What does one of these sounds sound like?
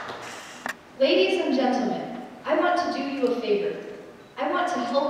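A young woman speaks calmly into a microphone in a large hall.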